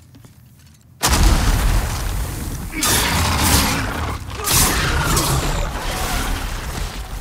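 A whirlwind roars and gusts loudly.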